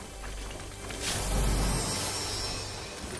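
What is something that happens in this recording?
A treasure chest creaks open with a shimmering chime.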